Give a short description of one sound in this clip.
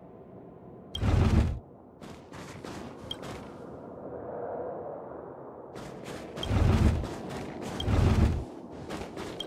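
A heavy wooden crate thuds and scrapes as it is pushed.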